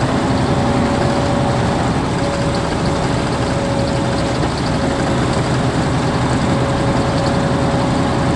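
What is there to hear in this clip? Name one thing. Tyres roll with a steady rumble on the road.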